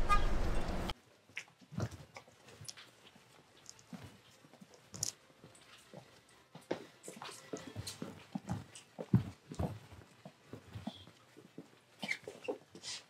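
Footsteps tap on a hard floor indoors.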